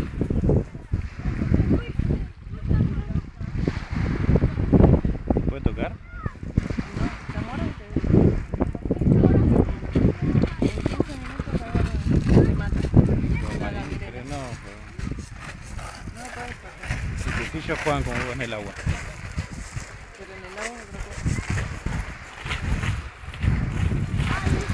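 Waves wash softly onto a pebble beach.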